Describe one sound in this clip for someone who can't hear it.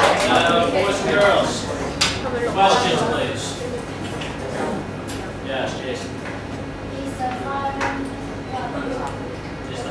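A young man speaks aloud to a room.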